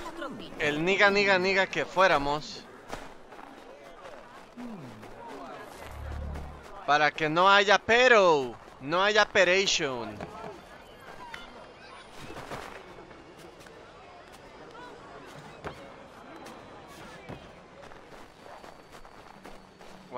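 Quick footsteps crunch through snow.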